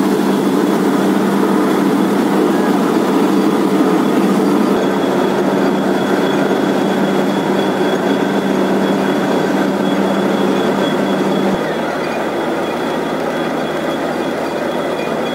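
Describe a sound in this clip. Muddy water gushes and splashes onto the ground.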